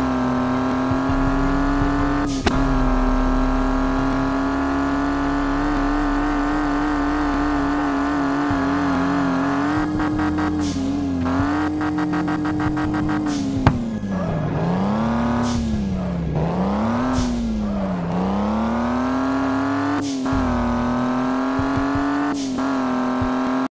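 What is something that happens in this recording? A car engine hums steadily at high revs, dipping and rising in pitch.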